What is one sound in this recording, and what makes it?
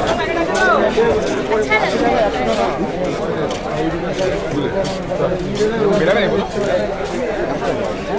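A middle-aged man talks nearby.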